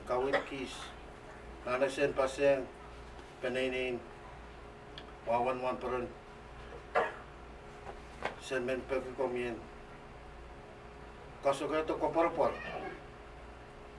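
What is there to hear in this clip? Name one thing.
A young man speaks calmly in short phrases with pauses, in a room with a slight echo.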